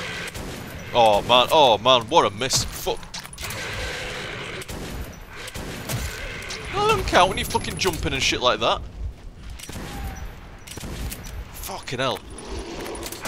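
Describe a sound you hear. A monstrous creature shrieks and screeches.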